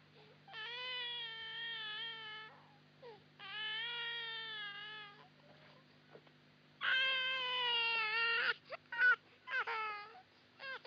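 A baby wails loudly in long, rising and falling cries.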